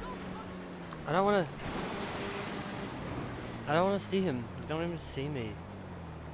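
Wind rushes past during a fall.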